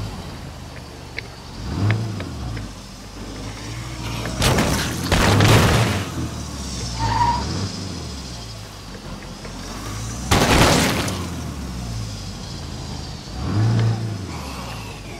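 A car engine rumbles and revs.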